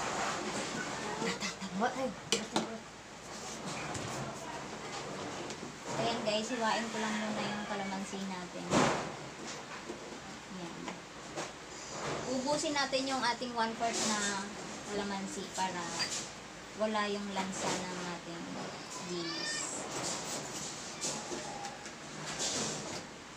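A knife cuts small fruit on a plastic cutting board with light taps.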